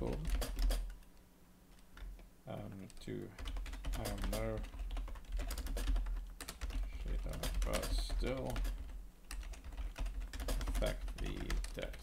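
Keyboard keys click quickly.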